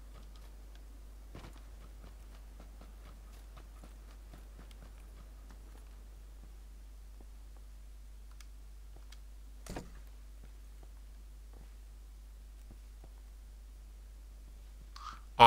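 Footsteps shuffle softly over grass and then a wooden floor.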